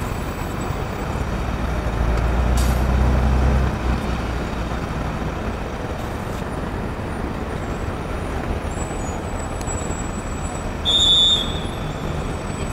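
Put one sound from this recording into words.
A bus engine rumbles nearby, loudest for a few seconds before settling to a low hum.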